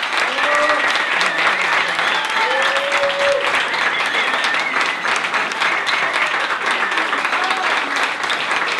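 Audience members whistle and cheer.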